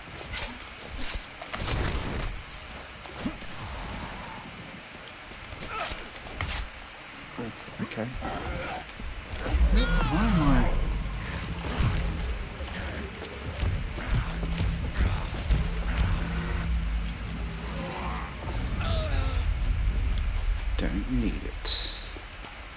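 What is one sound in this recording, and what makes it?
Heavy blows thud and squelch as zombies are struck.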